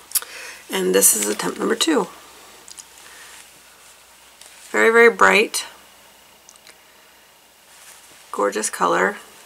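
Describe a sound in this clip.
A woman talks calmly and close to a microphone, in short bursts.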